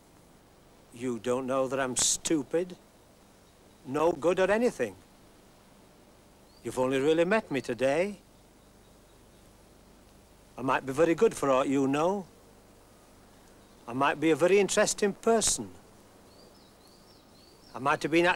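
A middle-aged man speaks calmly in short phrases with pauses between them.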